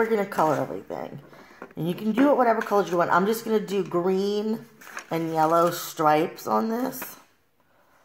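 A paper plate rustles as it is handled.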